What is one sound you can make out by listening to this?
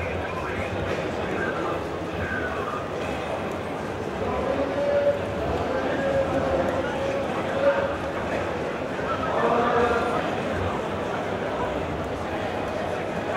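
A man speaks through a microphone over loudspeakers in a large echoing hall.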